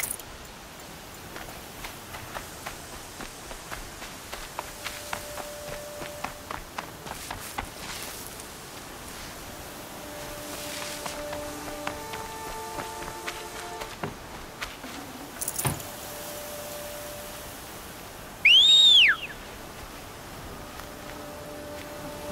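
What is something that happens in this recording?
Footsteps crunch quickly through dry grass and dirt.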